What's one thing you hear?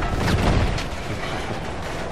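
An explosion booms close by and rumbles away.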